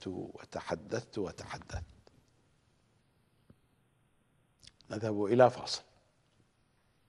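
A middle-aged man speaks with animation into a microphone, pausing between phrases.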